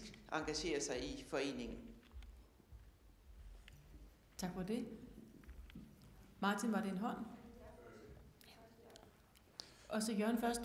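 An older woman speaks with animation into a microphone.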